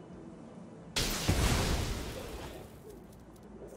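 A loud magical whoosh and crash bursts out and slowly fades.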